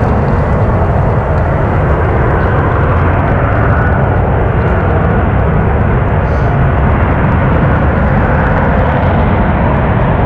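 A jet plane roars in the distance as it approaches to land.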